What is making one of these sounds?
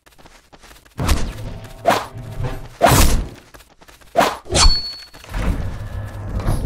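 Magic blasts burst and crackle loudly.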